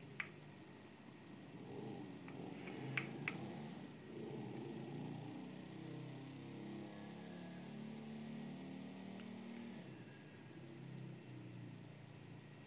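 A motorcycle engine hums steadily as it rides through an echoing tunnel.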